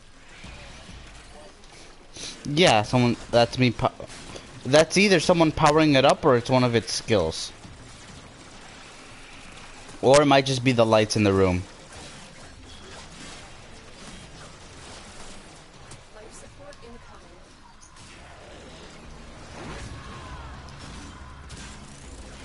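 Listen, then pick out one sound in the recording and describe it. A sword swishes and clangs in a video game fight.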